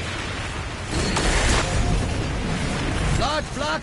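A loud energy blast bursts and rumbles.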